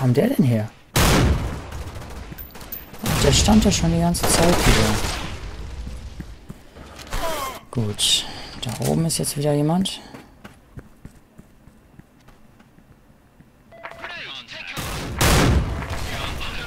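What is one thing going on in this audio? A sniper rifle fires loud, sharp shots.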